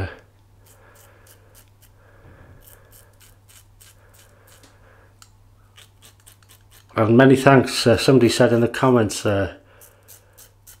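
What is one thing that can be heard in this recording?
A razor scrapes rapidly across stubble close by.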